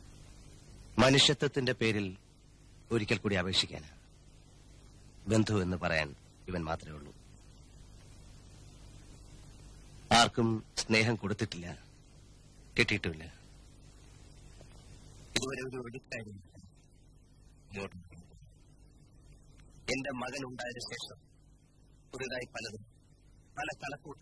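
A man speaks calmly, in short bursts with pauses.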